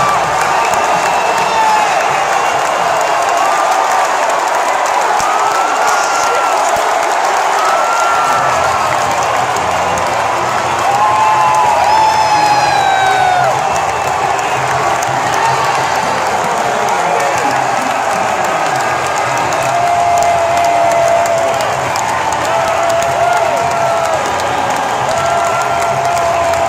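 Nearby men whoop and shout excitedly.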